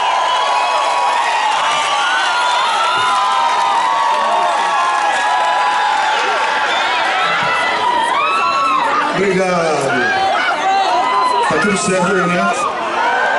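A large crowd sings along loudly outdoors.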